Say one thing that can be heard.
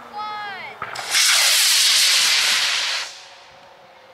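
A model rocket motor roars loudly with a hissing whoosh as it launches.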